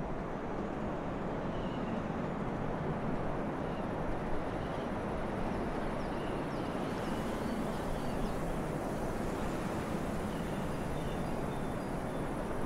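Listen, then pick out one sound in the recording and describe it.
Air rushes steadily past a gliding aircraft.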